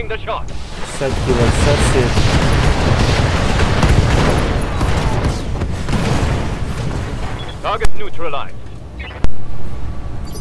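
Gunfire and explosions boom and rumble loudly.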